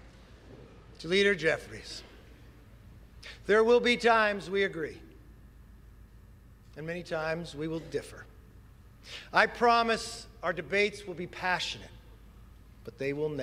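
A middle-aged man speaks formally into a microphone, with pauses.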